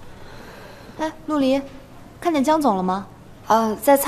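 A woman asks a question.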